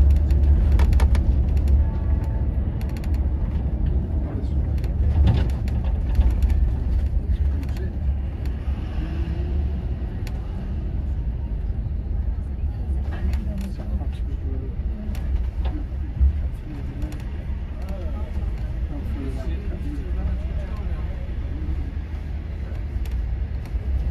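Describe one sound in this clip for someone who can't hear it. A bus engine idles and rumbles nearby.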